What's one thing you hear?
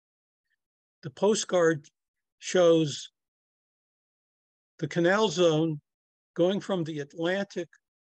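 An elderly man speaks calmly into a microphone, heard as if over an online call.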